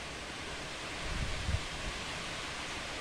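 Wind gusts rumble against the window.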